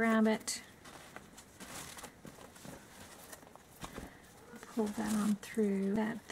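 Stiff card rustles and taps softly against a table.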